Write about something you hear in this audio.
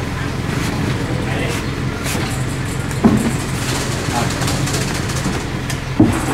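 A heavy wooden loudspeaker cabinet thuds and scrapes as it is shifted.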